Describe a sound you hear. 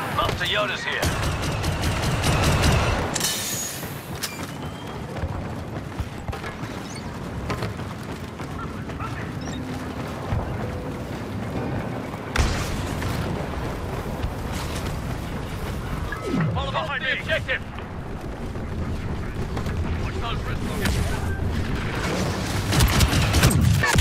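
Blaster shots fire in rapid bursts.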